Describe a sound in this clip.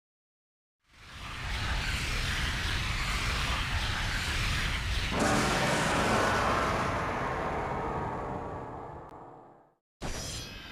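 A bright whooshing swell rises, holds, then slowly fades.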